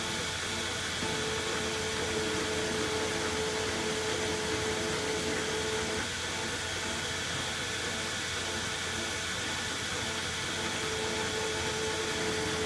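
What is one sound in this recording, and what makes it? A cutting tool scrapes and whines against a spinning metal rod.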